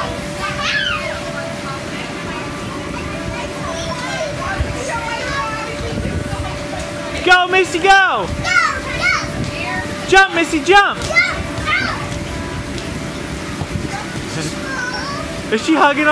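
Young children shout and squeal loudly nearby.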